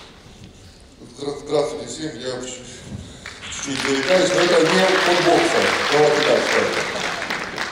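A man announces through a loudspeaker in a large echoing hall.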